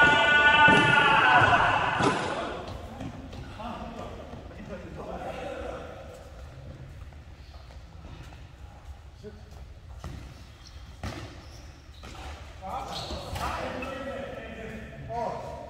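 Young men shout to each other in a large echoing hall.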